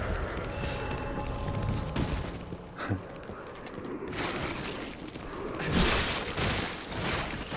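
Footsteps crunch over rocky ground.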